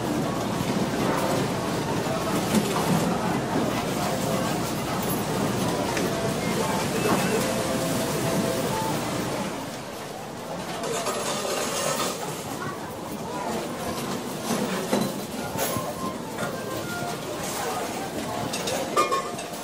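A crowd of people murmurs and chatters in a large busy hall.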